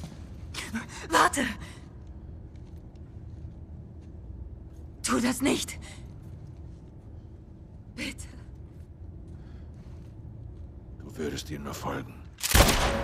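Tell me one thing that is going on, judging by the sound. A young woman pleads weakly, close by.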